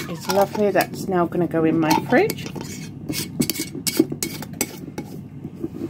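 A lid is screwed onto a glass jar with light clicks and scrapes.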